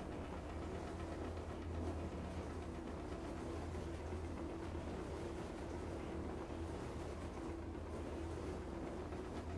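Wind rushes steadily past a gliding car.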